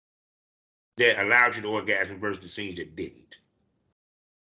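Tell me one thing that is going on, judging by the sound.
An elderly man speaks with animation over an online call.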